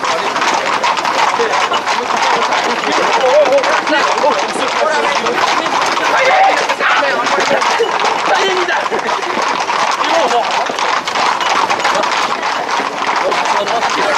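A crowd of people talks and shouts loudly close by.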